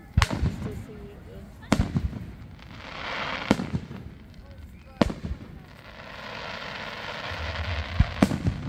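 Fireworks burst with loud booming bangs outdoors.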